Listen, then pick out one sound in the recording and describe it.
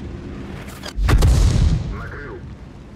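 A shell explodes with a heavy blast.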